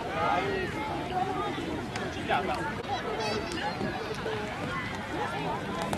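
A crowd of young people chatters and cheers outdoors.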